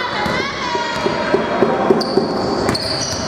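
A basketball bounces on a wooden court in an echoing hall.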